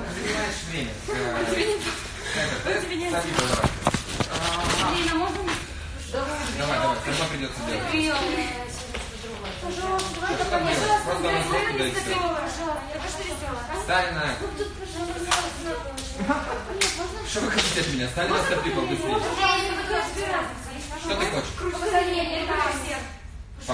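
A young woman talks with animation close to a phone's microphone, in an echoing room.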